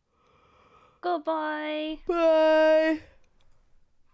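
A young woman sings in long drawn-out notes into a close microphone.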